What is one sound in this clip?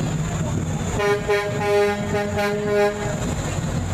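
A truck horn blares loudly for a couple of seconds.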